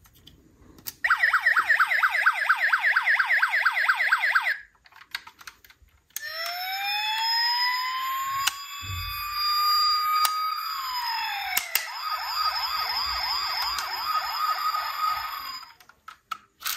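A toy police car's siren wails in fast electronic warbles, then in slow rising and falling sweeps.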